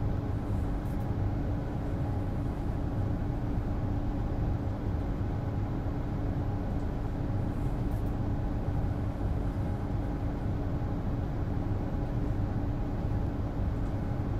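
A train's electric motors hum steadily while the train stands idle.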